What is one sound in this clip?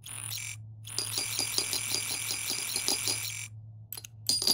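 A machine whirs and buzzes steadily for a few seconds.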